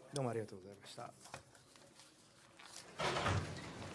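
Papers rustle and shuffle.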